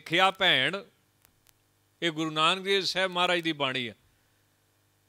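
A man speaks into a microphone in drawn-out, sung phrases.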